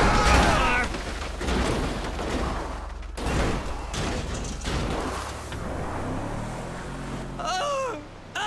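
A truck engine roars and revs.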